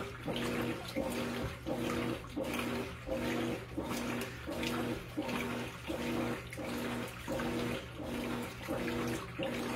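Water sloshes and splashes inside a washing machine drum.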